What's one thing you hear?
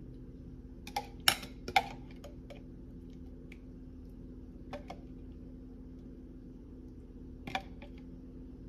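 A metal fork clinks against a glass jar.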